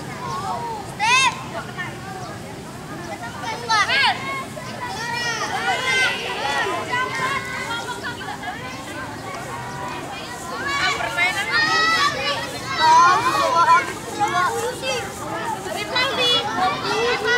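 Young girls squeal and laugh excitedly.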